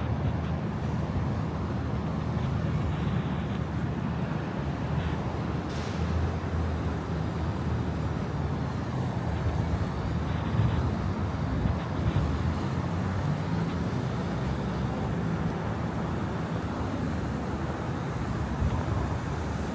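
A steady low city hum fills an open outdoor space.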